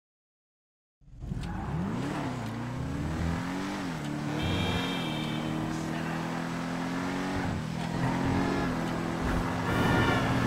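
A car engine drones and changes pitch as it drives along a street.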